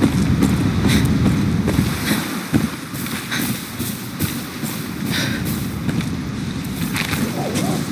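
Leaves and tall grass rustle as someone pushes through them.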